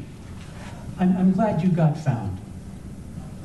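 An elderly man speaks calmly in reply.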